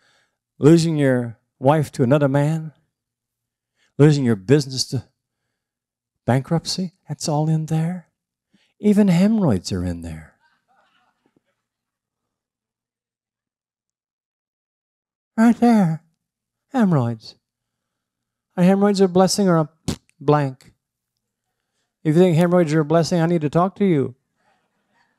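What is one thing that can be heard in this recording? An older man speaks calmly through a microphone, with pauses.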